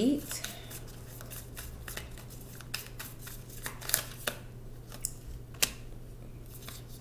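Playing cards are shuffled and laid down on a wooden table with soft slaps and rustles.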